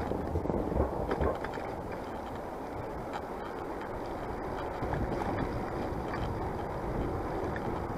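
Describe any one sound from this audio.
Bicycle tyres roll over a paved road.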